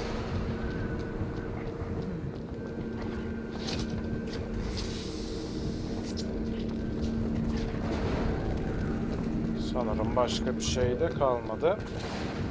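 Footsteps tap across a stone floor.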